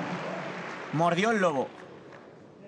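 A spectator shouts loudly.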